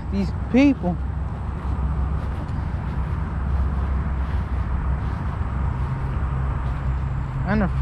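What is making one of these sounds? Footsteps brush through grass.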